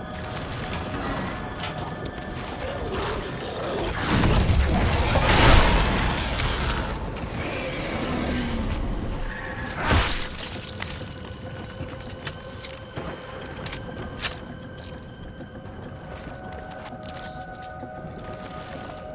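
Wind howls and gusts in a snowstorm.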